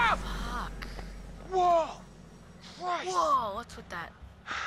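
A young man cries out in fright close by.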